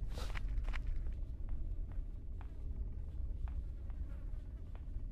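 Footsteps thud slowly on wooden stairs.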